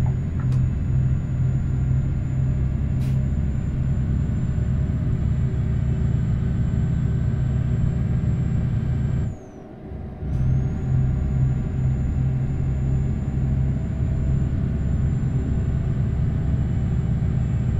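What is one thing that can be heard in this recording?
A truck engine rumbles steadily as it drives.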